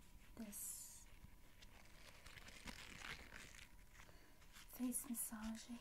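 Hands squeeze and tap a soft sponge.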